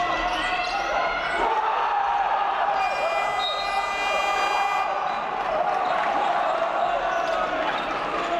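A crowd of young men and women cheers and shouts loudly in a large echoing hall.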